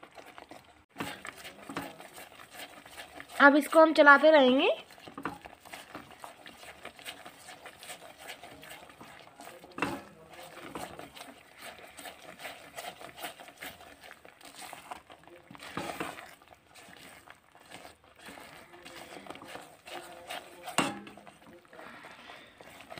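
A silicone spatula stirs and scrapes thick, moist grated coconut in a metal pan.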